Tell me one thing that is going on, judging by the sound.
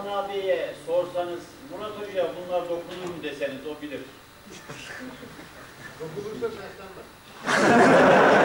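An elderly man chants melodically into a microphone.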